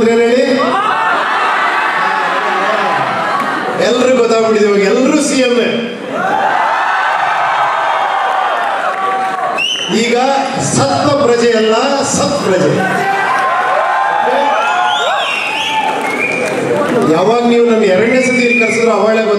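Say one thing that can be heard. A man sings through a microphone and loudspeakers in a large hall.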